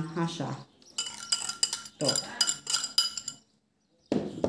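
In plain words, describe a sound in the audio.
A wire whisk clinks rapidly against a glass bowl.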